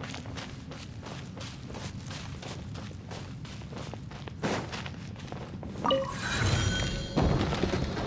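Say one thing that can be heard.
Footsteps patter quickly on ground.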